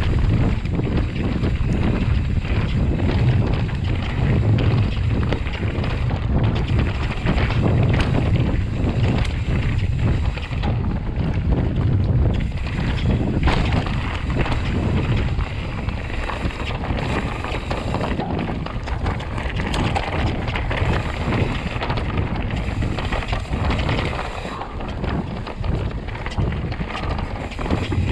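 Wind rumbles loudly against the rider.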